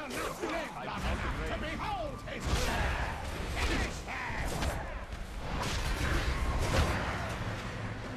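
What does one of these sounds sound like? Magic spells crackle and whoosh in a video game battle.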